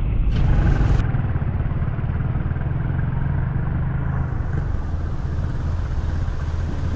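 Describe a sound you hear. A motorbike engine putters past.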